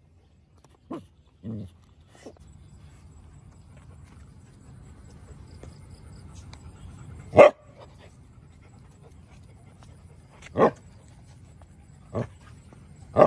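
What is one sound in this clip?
A dog sniffs and snuffles close by.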